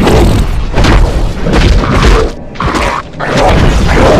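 A spell bursts with a loud magical whoosh.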